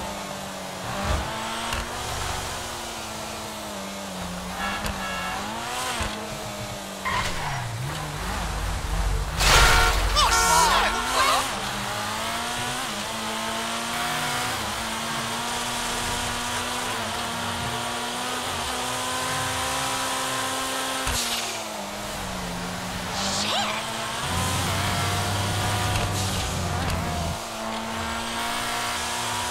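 A sports car engine revs up and shifts gears.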